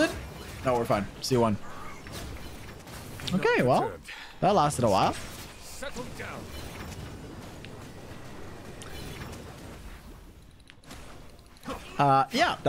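Video game battle effects whoosh and crackle.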